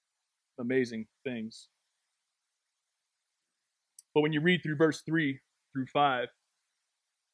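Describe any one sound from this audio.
A man speaks thoughtfully through a microphone, in short phrases with pauses.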